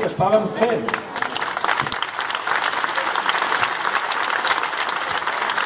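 A crowd claps its hands loudly.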